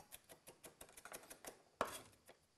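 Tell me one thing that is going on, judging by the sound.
A knife chops quickly on a wooden board.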